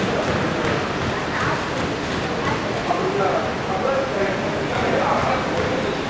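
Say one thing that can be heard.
A crowd of spectators murmurs in an indoor arena.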